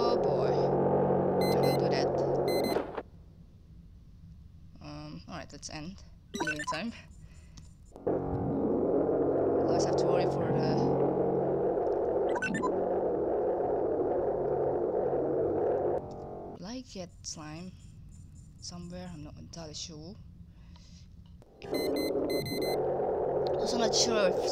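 A low electronic hum with crackling static drones steadily.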